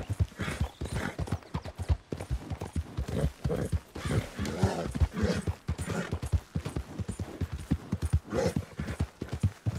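Horse hooves pound rapidly on the ground.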